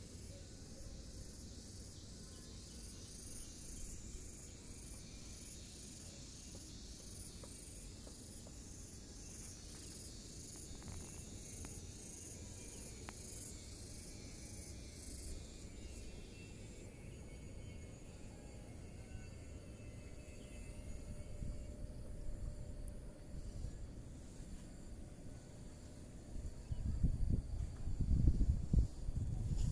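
Wind blows and rumbles outdoors, gusting harder near the end.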